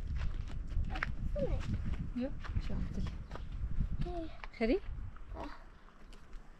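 A young woman talks quietly close by.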